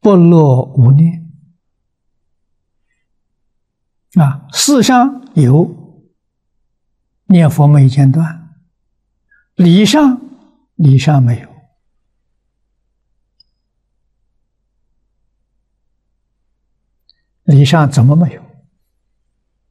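An elderly man speaks calmly close to a microphone, in short phrases with long pauses.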